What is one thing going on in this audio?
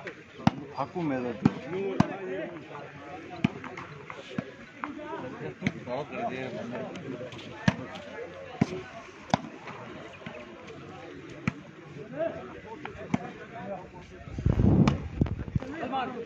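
Hands strike a volleyball with sharp slaps.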